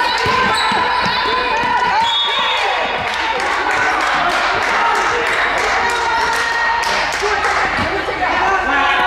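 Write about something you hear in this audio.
A basketball bounces on the floor in quick thuds.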